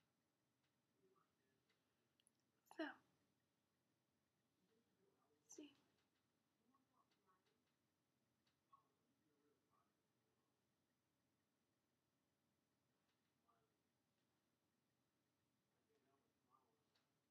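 A young woman talks quietly and calmly, close by.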